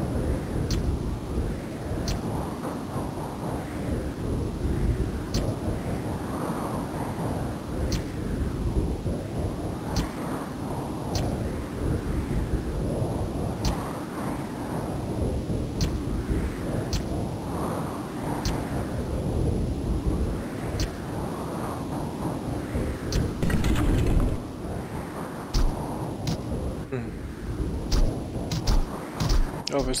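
Game music plays steadily with a swelling, repeating melody.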